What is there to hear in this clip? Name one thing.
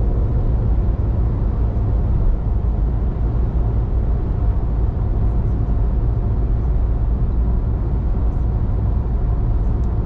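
Tyres roll along a motorway with a steady low rumble inside a moving car.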